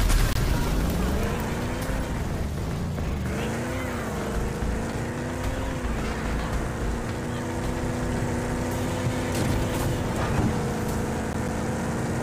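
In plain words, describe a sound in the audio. An engine revs and roars, rising and falling in pitch.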